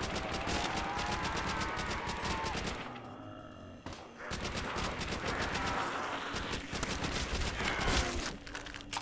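A rifle fires repeated shots.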